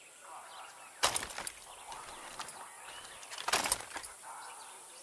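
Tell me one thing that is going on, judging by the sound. A rifle rattles with a sharp metallic clatter as it is raised.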